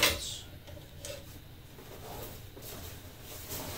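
Fabric rustles as a man handles clothing.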